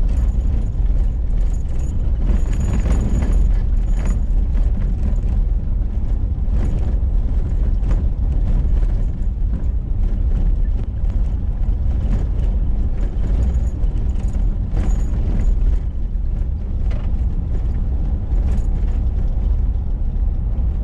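Tyres crunch and rattle on a gravel road.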